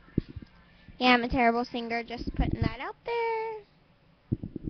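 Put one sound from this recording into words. A teenage girl speaks close by, animated and sing-song.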